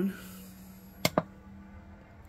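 A radio knob clicks as it is turned.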